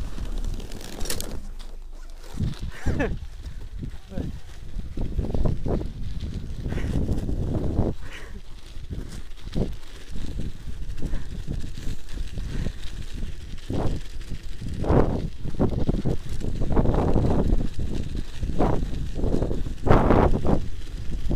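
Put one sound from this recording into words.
Bicycle tyres crunch over packed snow.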